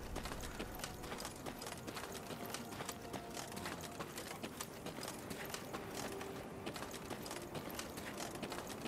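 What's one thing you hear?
Footsteps tread on a dirt path.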